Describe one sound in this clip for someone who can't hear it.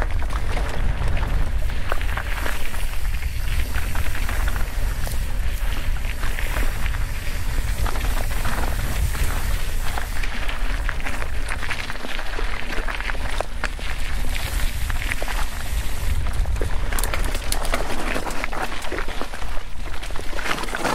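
Wind rumbles loudly against the microphone outdoors.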